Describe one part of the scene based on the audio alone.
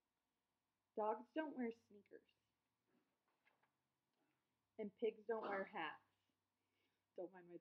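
A young woman reads aloud with expression, close to the microphone.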